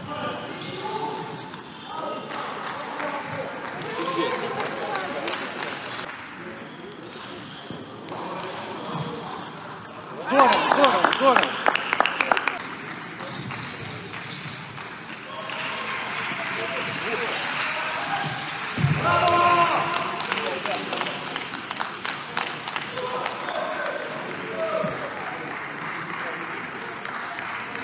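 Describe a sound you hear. A table tennis ball clicks back and forth between paddles and the table in a large echoing hall.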